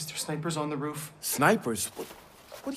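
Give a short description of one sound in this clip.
A second man answers with surprise.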